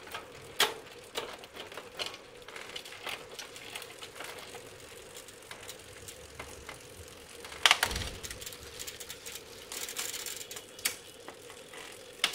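A bicycle chain clicks and rattles as the pedals are turned by hand.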